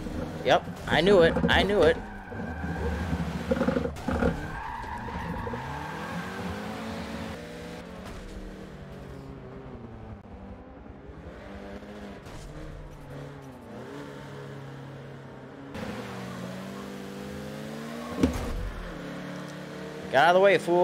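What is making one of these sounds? A car engine revs and whines as it races.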